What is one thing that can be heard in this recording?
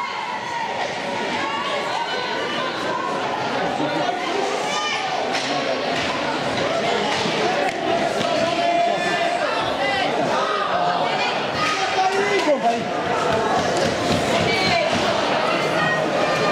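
Ice hockey skates scrape on ice.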